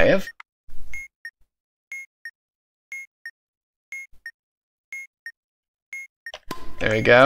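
An electronic timer beeps once every second.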